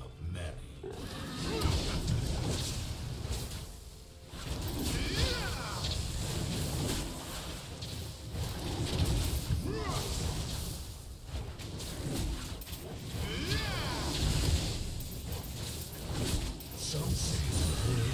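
Blows and magical bursts ring out in a video game fight.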